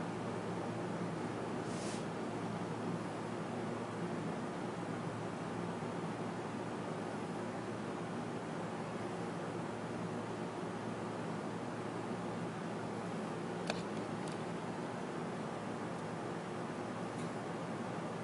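A computer fan whirs steadily.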